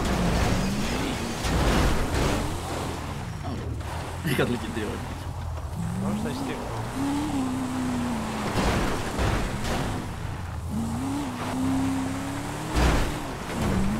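Cars thud and crunch as they bump into each other.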